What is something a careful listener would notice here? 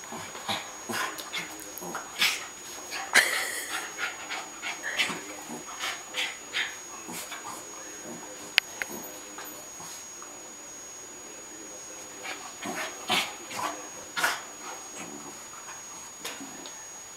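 A small dog's claws scratch and patter on a rug.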